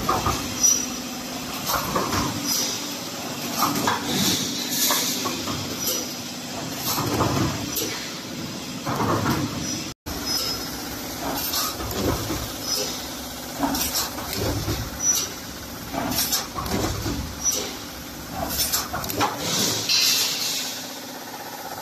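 A large machine clatters and thumps in a steady rhythm.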